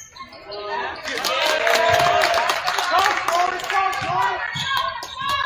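A crowd cheers in an echoing gym.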